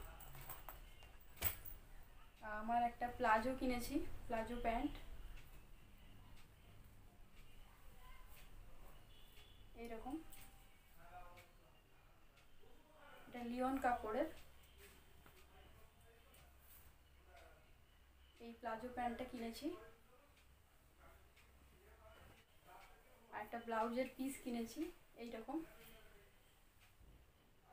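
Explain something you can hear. Cloth rustles as a young woman handles it.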